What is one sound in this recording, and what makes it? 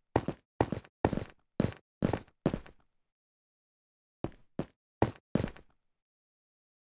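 Footsteps tap on stone in a short, regular rhythm.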